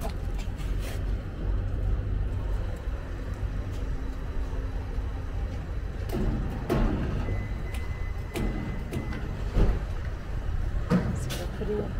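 A fuel pump hums steadily as fuel flows.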